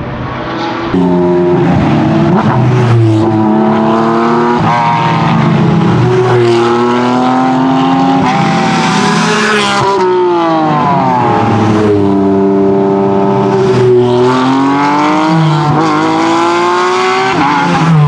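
Sports car engines rev and accelerate loudly one after another.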